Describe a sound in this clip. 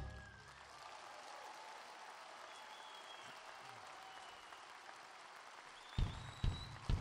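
Music plays from a stage in a large hall.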